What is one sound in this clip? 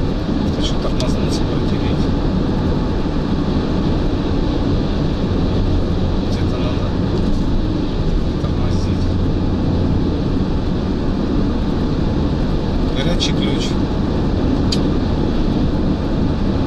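Tyres roar steadily on a road.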